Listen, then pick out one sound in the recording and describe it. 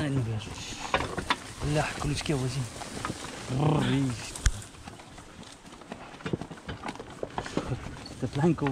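A wooden cart creaks and rattles as it rolls along.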